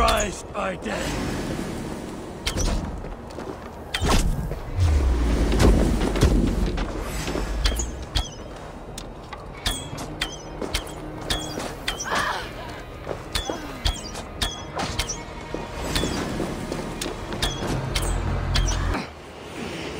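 A bow twangs as arrows are loosed, one after another.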